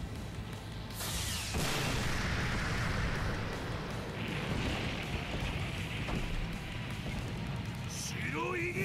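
Rocks crash and rumble as they break apart.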